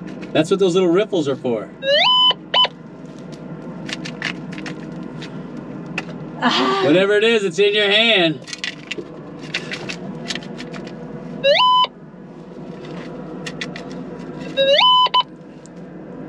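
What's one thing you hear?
A plastic scoop scrapes through loose dirt.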